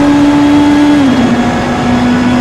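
A race car engine drops in pitch as the gear shifts up.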